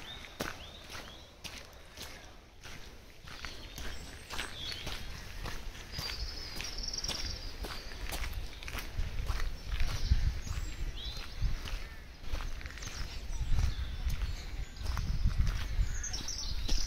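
Footsteps crunch on a wet gravel track.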